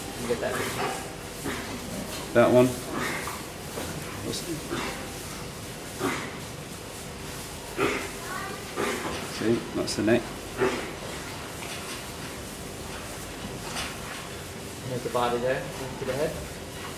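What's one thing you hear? A man speaks calmly and explains, close by.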